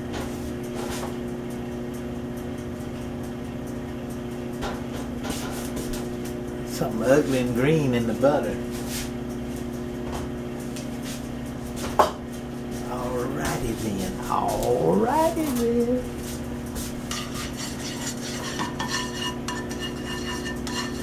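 Butter sizzles and crackles softly in a hot pan.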